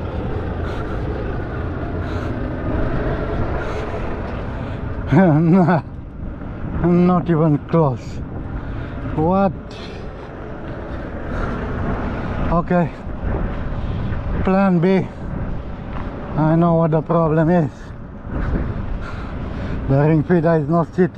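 Wind blows across an open outdoor space.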